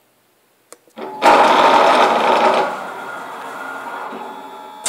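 A plasma cutter torch hisses and roars as it cuts through steel.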